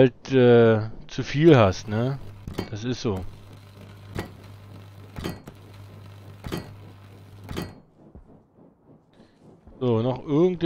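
A man talks with animation close to a microphone.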